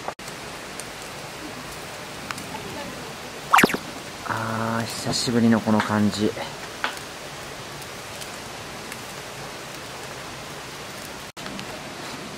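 Charcoal crackles softly on a grill.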